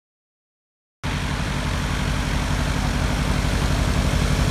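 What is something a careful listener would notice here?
A small propeller plane's engine runs loudly nearby with a steady throbbing drone.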